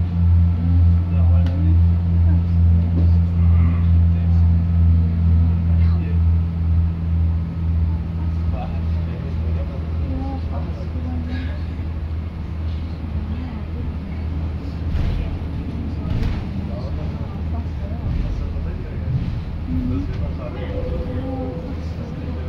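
A bus engine hums and throbs steadily.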